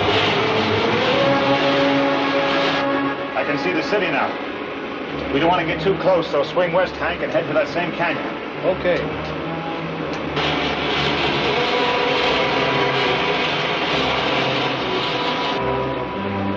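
A rocket engine roars with a steady rushing hiss.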